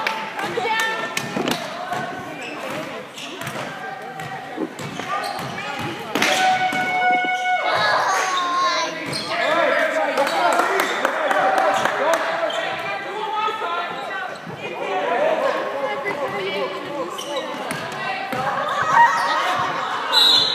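Spectators shout and cheer in a large echoing gym.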